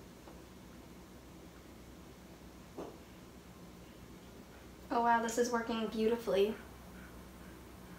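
A whisk clinks against a bowl.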